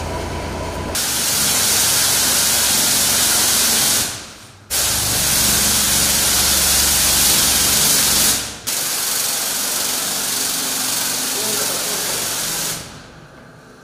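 A sprayer hisses loudly, spraying in bursts.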